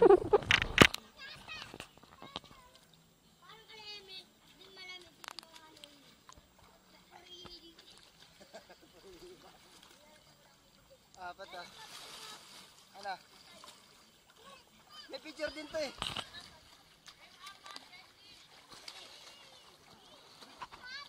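Children shout and laugh playfully outdoors at a pool.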